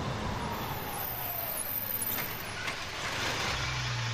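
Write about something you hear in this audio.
A pickup truck engine rumbles as the truck pulls up and stops.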